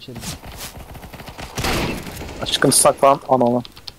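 A pump shotgun fires a blast.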